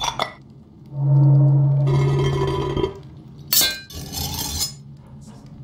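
A metal mechanism clanks and snaps open.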